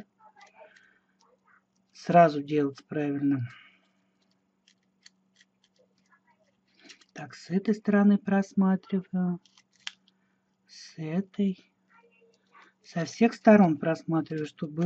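Aluminium foil crinkles softly as fingers squeeze and rub a small foil ball.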